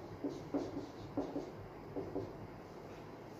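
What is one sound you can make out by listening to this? A marker squeaks in short strokes on a whiteboard.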